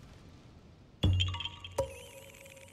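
A sparkling magical chime rings out with a whoosh of swirling leaves.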